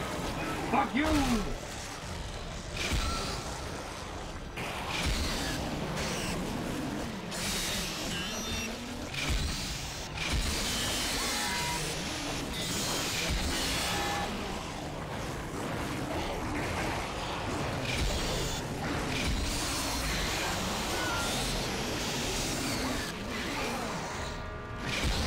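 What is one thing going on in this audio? A creature screeches and growls.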